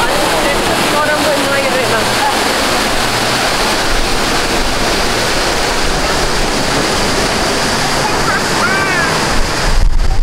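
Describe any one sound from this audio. Passing men and women chat briefly nearby.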